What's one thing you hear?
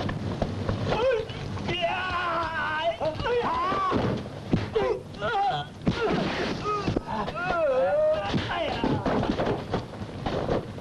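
A man shouts in distress.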